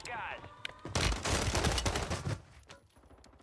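A pistol fires several loud shots in quick succession.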